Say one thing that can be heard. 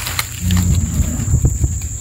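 A bull paws and scuffs the dry ground.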